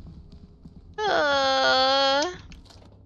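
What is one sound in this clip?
A young woman lets out a long, loud, high-pitched shriek close to a microphone.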